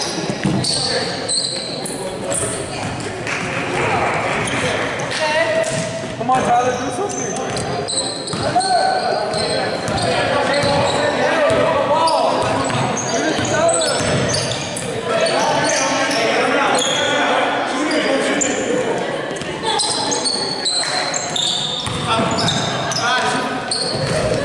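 Young men shout and call out across a large echoing gym.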